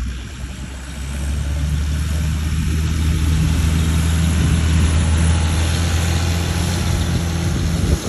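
A tractor engine rumbles steadily as it drives up close.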